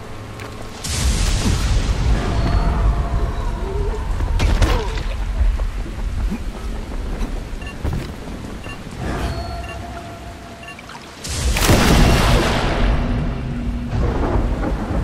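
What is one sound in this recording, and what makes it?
Wind rushes loudly past during a fall.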